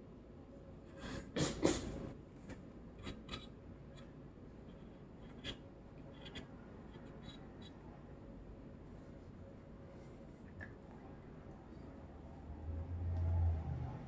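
A paintbrush taps and brushes against wood.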